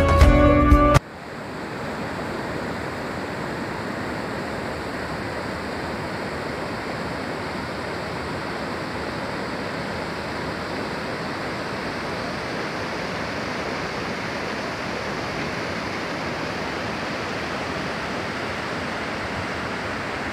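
Water rushes steadily over a low weir.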